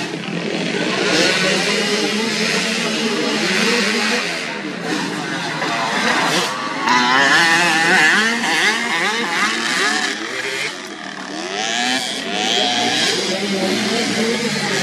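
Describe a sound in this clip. A dirt bike engine revs loudly and whines as the bike races past.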